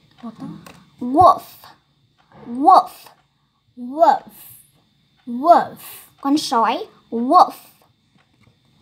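A second young girl answers close by, loudly and expressively.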